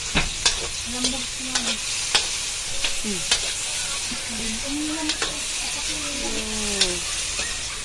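A metal spoon scrapes and clinks against a wok.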